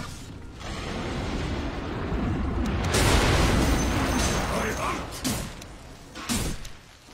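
Spell and combat effects from a video game whoosh and crackle.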